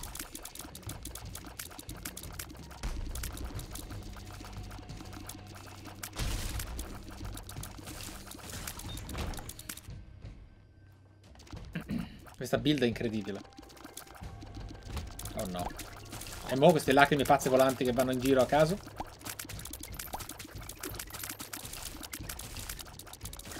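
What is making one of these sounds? Video game shots and bursts pop rapidly.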